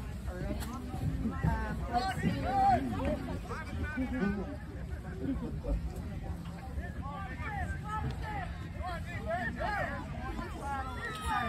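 Young children shout and chatter outdoors.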